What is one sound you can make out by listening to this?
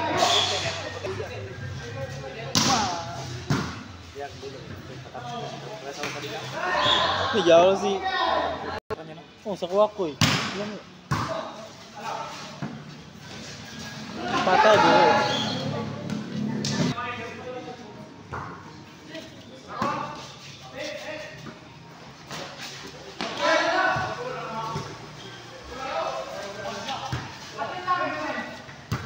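Young players and spectators shout and call out in a roofed, echoing court.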